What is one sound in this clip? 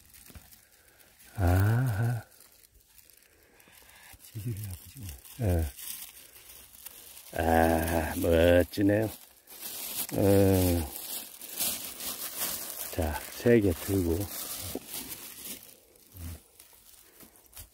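Dry pine needles rustle as a gloved hand digs through them.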